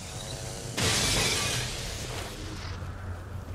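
Energy weapons fire in sharp bursts.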